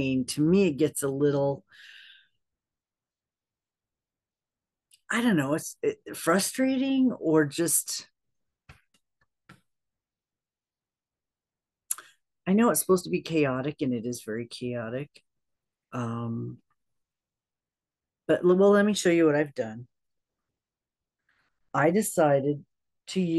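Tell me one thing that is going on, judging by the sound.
A middle-aged woman talks calmly and closely into a microphone, with pauses.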